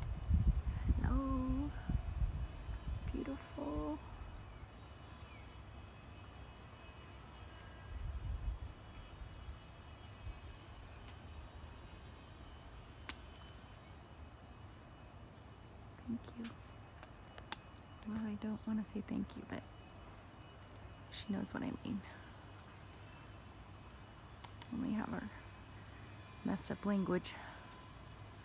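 Birds call overhead.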